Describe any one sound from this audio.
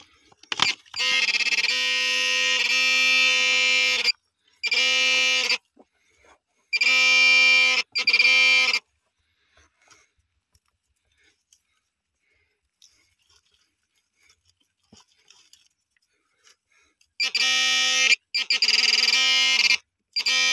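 A handheld metal detector gives a loud, steady buzzing tone in bursts.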